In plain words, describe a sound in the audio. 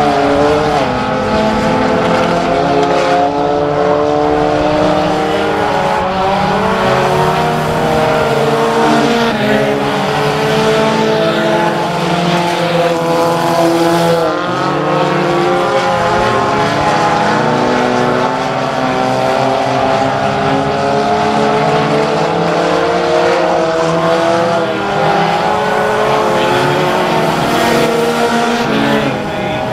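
Many race car engines roar loudly and rev up and down.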